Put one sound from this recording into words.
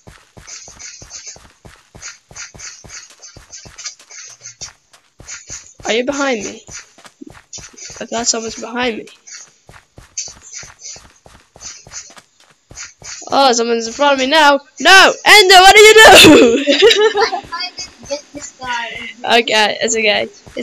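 Footsteps tread quickly on stone.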